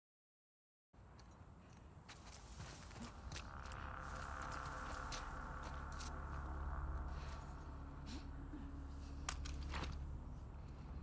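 Tall grass rustles as a person creeps through it.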